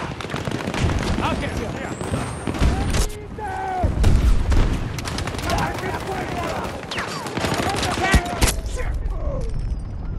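Gunfire and explosions crack and boom in a video game battle.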